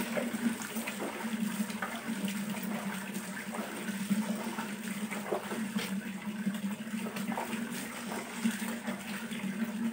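Water splashes as a cloth is rinsed in a bucket.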